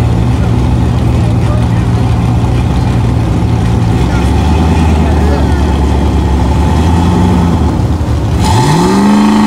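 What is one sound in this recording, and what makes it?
A drag car's engine idles with a loud, lumpy rumble.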